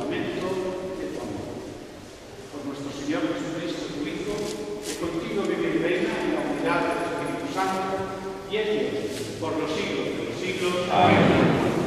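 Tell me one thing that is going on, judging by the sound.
A man speaks steadily into a microphone, heard through loudspeakers in a large echoing hall.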